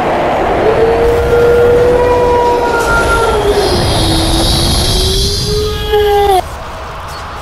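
A man's voice sings in a high, wavering tone.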